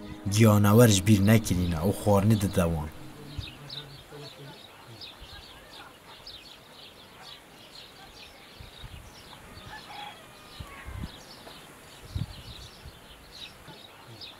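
Rabbits nibble and munch on greens.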